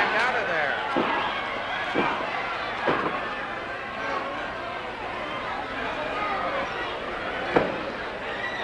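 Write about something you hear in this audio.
Bodies thud heavily onto a wrestling ring's mat.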